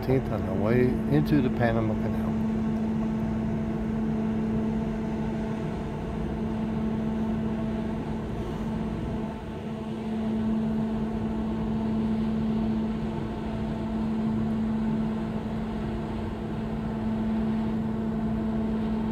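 Water rushes along a ship's hull.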